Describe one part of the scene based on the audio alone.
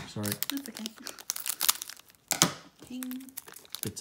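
Scissors snip through a foil packet.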